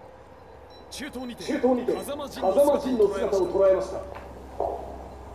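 A man speaks firmly.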